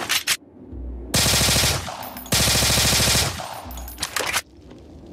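A pistol fires in quick shots.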